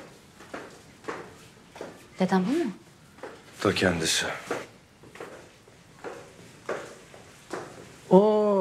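Footsteps tap on stairs.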